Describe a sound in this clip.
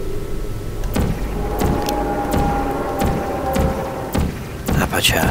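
An energy field fizzes and crackles.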